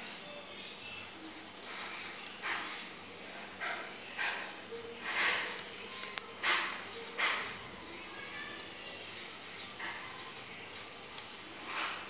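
Paper crinkles and rustles in hands.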